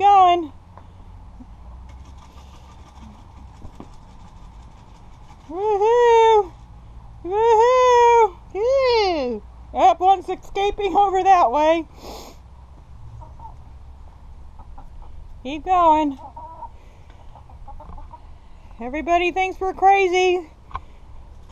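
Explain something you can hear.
An elderly woman calls out to chickens in a high, sing-song voice nearby.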